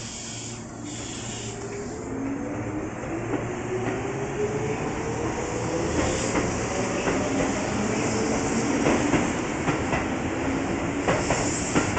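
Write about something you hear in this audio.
An electric train pulls away, its motors whining upward in pitch as it speeds up.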